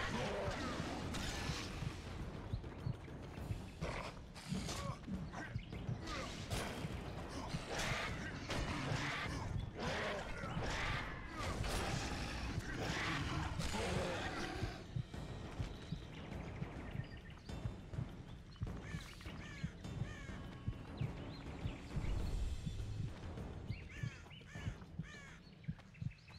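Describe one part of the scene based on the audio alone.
A sword swings and strikes in a fight.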